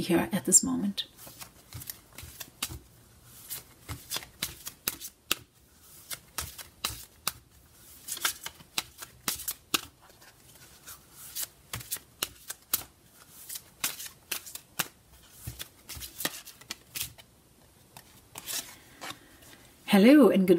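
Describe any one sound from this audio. Playing cards are shuffled with soft, quick clicks and riffles.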